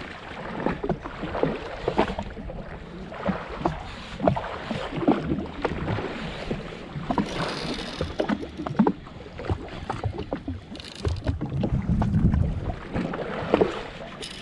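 Waves slap against a small boat's hull.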